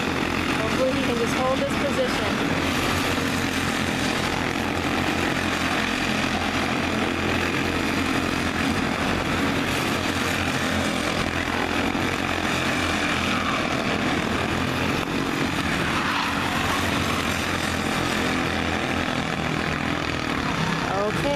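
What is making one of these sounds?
Kart engines buzz and whine steadily as karts race past nearby, outdoors.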